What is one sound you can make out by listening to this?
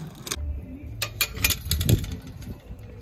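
A metal gate latch rattles and clanks.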